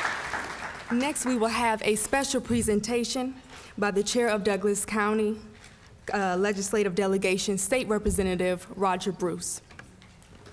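A young woman speaks calmly through a microphone in a large room.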